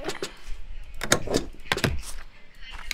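A rubber stamp thuds down onto paper.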